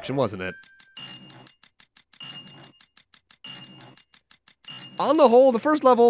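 Puzzle panels click into place with short bright chimes.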